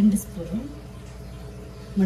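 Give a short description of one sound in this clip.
A metal spoon taps and scrapes against a glass bowl.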